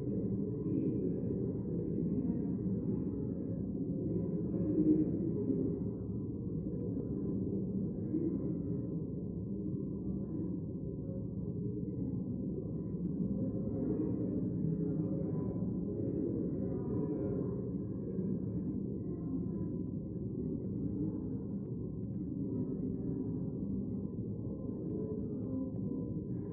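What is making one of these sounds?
Many men and women murmur and chat quietly in a large echoing hall.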